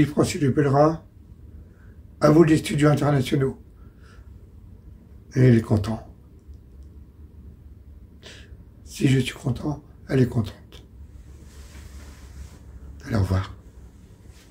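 An elderly man speaks calmly in short bursts, close to a microphone.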